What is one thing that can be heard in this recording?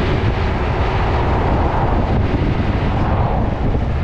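A car passes close by in the other direction.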